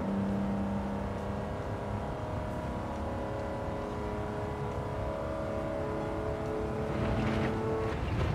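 A racing car engine drones steadily at high revs.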